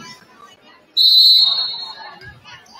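A referee's whistle blows once, loud and shrill.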